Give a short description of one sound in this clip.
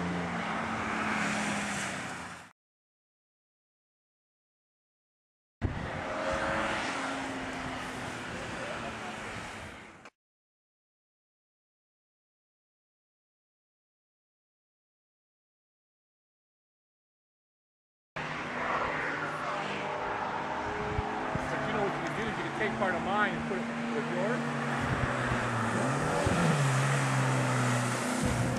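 A car engine roars as a car speeds along a wet road.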